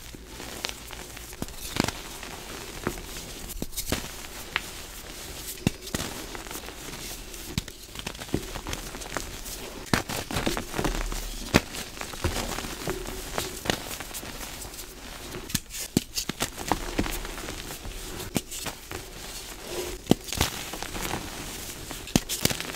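Hands crush and crumble soft chalk close up, with dry, gritty crunching.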